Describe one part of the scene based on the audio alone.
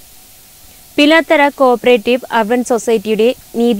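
A woman speaks clearly and steadily into a microphone, like a news presenter.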